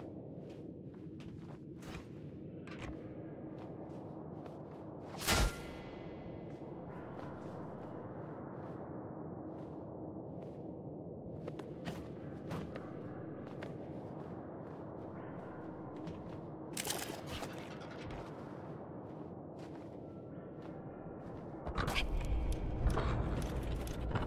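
A game character's footsteps tap on stone.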